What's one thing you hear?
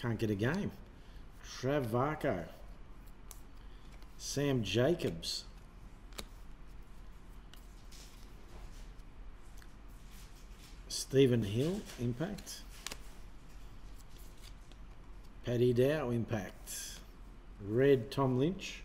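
A man talks casually close to a microphone, in short bursts.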